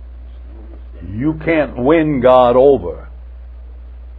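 An elderly man speaks with feeling through a clip-on microphone.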